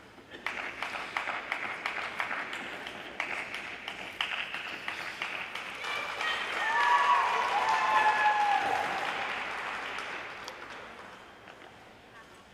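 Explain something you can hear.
A small audience claps and cheers in a large echoing rink, then the applause fades.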